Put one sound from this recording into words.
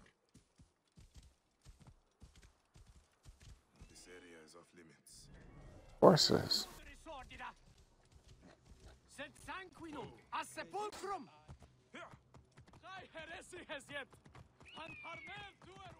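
Horse hooves thud on dirt at a gallop.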